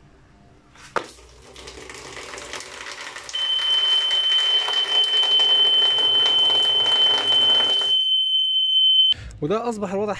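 A small electric pump whirs steadily.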